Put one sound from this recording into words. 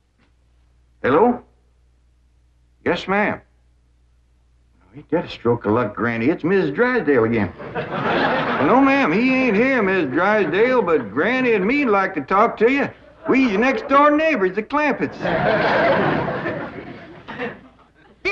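A middle-aged man talks loudly into a telephone.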